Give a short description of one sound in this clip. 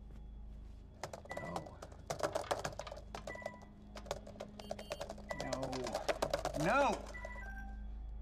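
Fingers clatter quickly on a keyboard.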